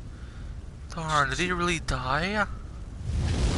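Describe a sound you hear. A man speaks softly with strain.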